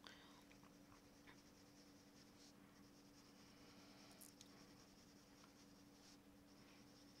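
A crayon scratches softly across paper.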